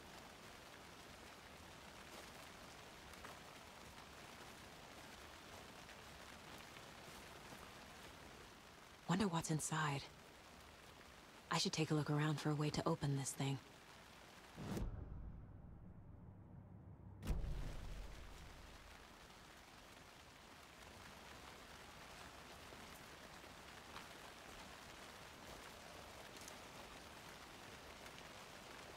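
Footsteps crunch softly on a forest floor.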